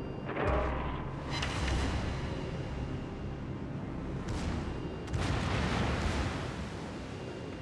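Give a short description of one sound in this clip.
Waves wash steadily against a ship's hull.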